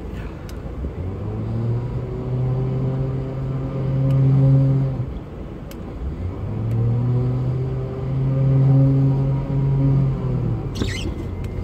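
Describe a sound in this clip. A vehicle engine revs hard in repeated bursts, close by.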